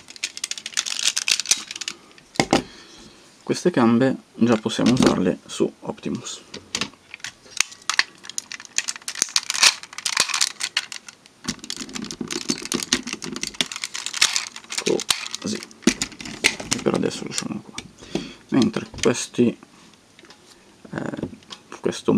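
Plastic toy parts click and clack as they are handled.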